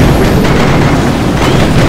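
Fire roars from a flamethrower.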